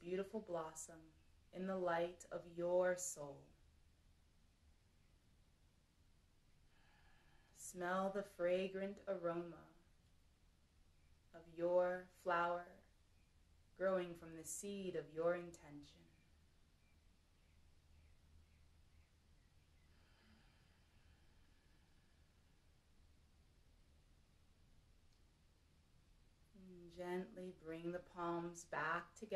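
A woman speaks calmly and softly close by, with long pauses.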